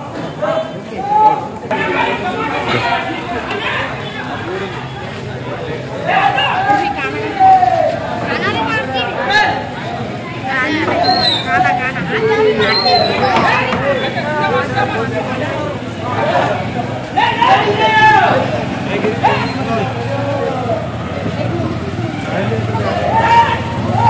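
A crowd of men talks and calls out nearby, outdoors.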